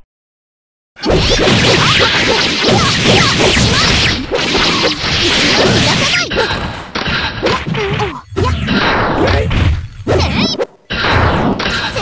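Fighting game hits and sword slashes land in rapid bursts.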